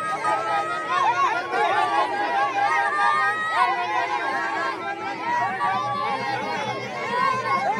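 A young man cries out loudly close by.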